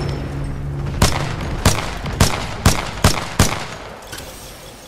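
A pistol fires single sharp shots in quick succession.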